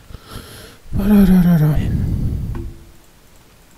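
A computer terminal whirs and chimes loudly for a moment.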